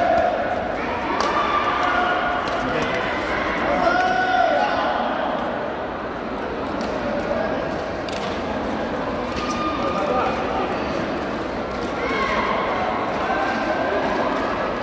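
Many people chatter in the background of a large echoing hall.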